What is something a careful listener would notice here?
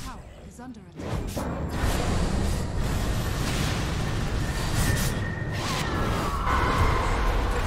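Magic spells crackle and boom.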